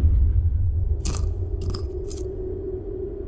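A knife blade taps against a wooden board.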